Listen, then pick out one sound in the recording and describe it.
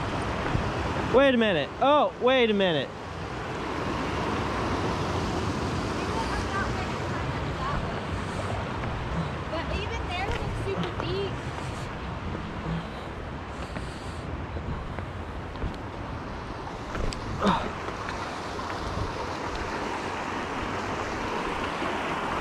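A stream of water flows and burbles steadily over rocks.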